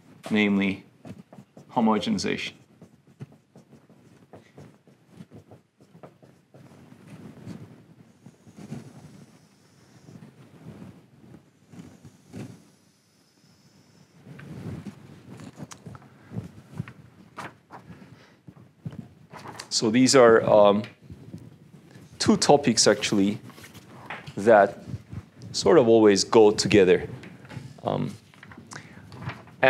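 A young man speaks calmly, as if lecturing.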